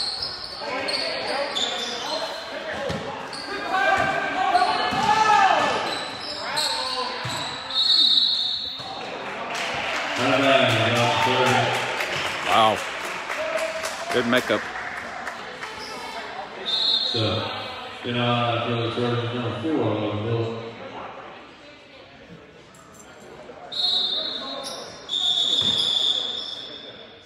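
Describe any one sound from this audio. Sneakers squeak on a hardwood court.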